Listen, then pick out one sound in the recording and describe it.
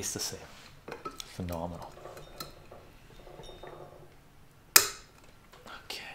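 A glass lid clinks sharply onto a jar.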